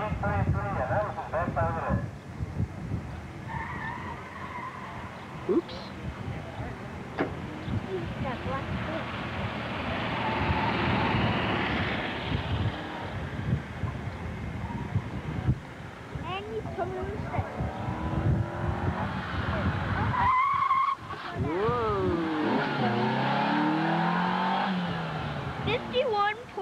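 A car engine revs hard and rises and falls in pitch.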